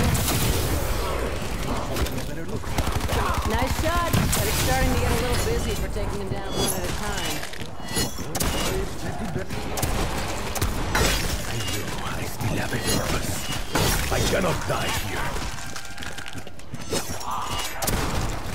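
Fire and energy blasts roar and crackle.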